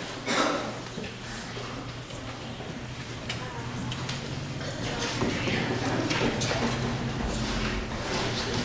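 Children speak lines on a stage in a large echoing hall.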